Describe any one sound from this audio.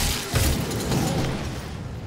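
A chainsaw revs.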